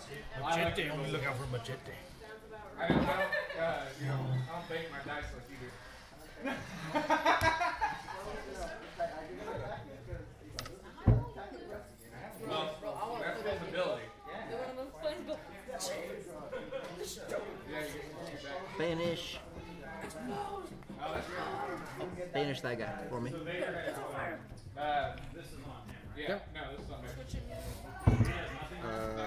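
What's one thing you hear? Young men talk calmly across a table, close by.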